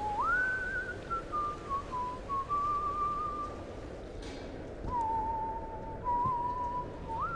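A man whistles a slow tune nearby.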